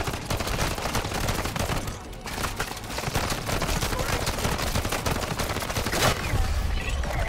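Rapid gunfire rattles loudly.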